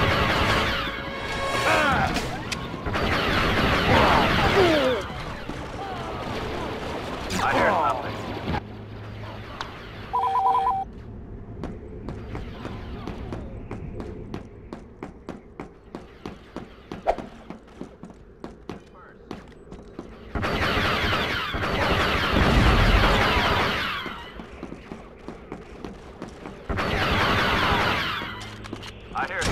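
Blaster rifles fire in rapid bursts with loud zapping shots.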